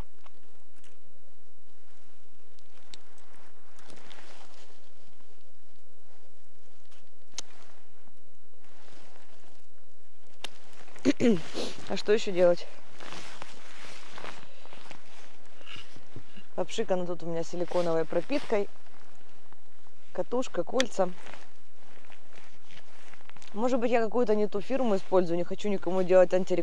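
A fishing reel clicks as it is wound.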